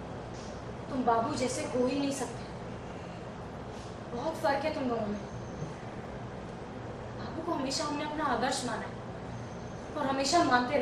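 A young woman speaks tensely nearby.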